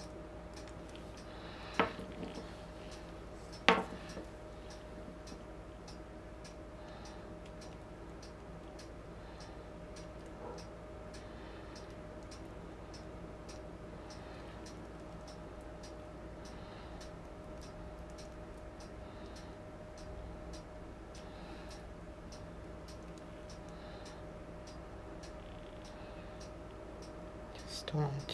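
Wet paint drips and patters onto a surface.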